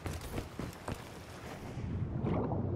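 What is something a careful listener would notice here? Water splashes and pours from fountains.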